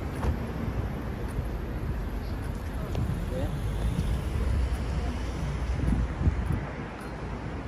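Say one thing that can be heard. Steady city street noise hums outdoors.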